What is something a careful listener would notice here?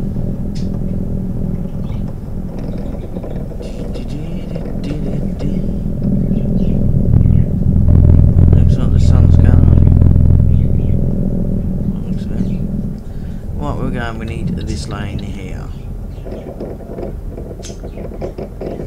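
A truck engine rumbles steadily, growing louder and then easing off.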